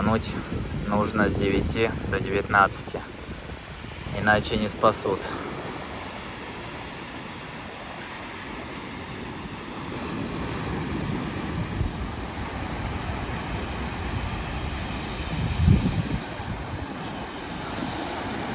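Waves break and wash onto a sandy shore.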